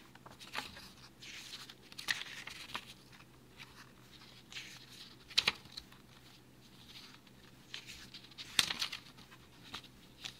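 Paper pages rustle as a booklet's pages are turned by hand.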